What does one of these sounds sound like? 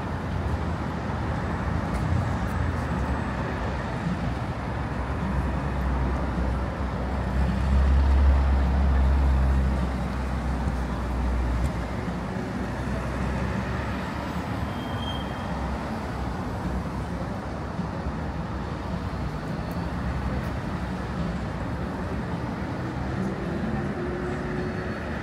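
Cars drive past steadily on a city street outdoors.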